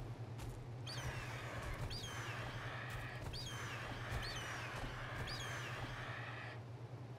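A large bird screeches in short high calls.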